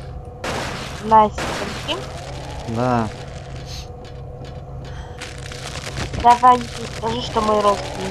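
A young man speaks briefly through a headset microphone.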